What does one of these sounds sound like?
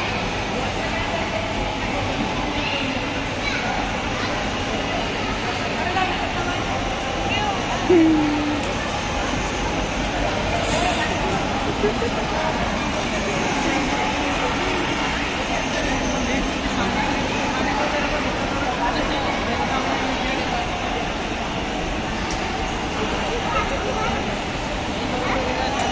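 A toy car's electric motor whirs as it rolls across a hard floor.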